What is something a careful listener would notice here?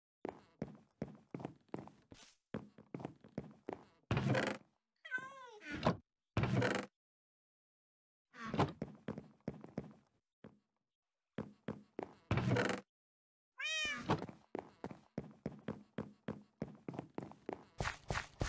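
Footsteps tap quickly across a wooden floor.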